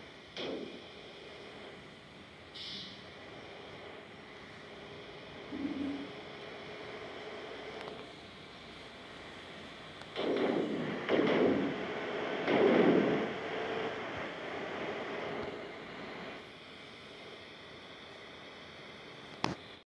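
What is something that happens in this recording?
A bus engine drones steadily.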